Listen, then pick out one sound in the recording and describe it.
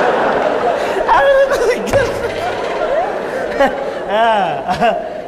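A man speaks loudly and theatrically.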